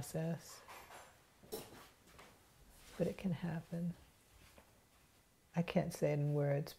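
A woman speaks calmly and slowly close by, in short phrases with pauses.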